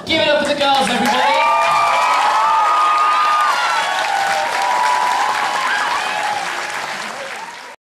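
A group of young women sings together on stage.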